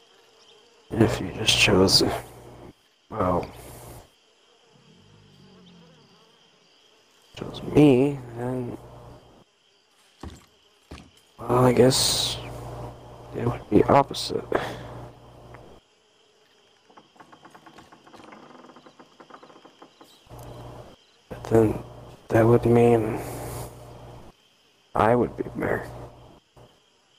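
A man speaks in a low, tense voice, close by, in short bursts.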